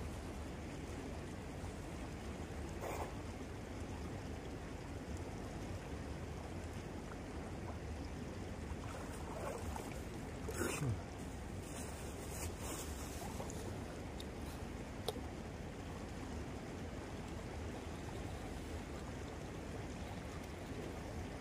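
A river flows steadily nearby.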